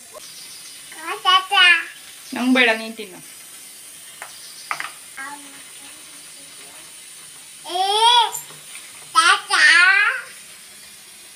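A toddler babbles and squeals in short, high bursts, close by.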